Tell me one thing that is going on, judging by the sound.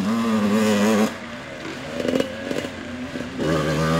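A small quad bike engine whines nearby.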